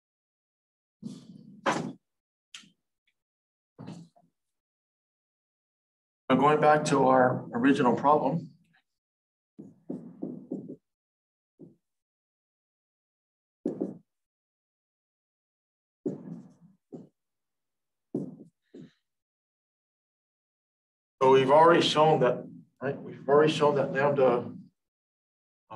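A man speaks calmly, as if explaining a lesson.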